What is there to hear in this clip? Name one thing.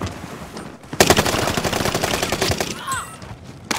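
A gun fires in a rapid, rattling burst.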